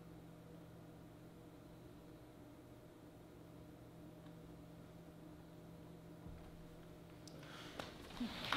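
A harp's final notes ring out softly and fade.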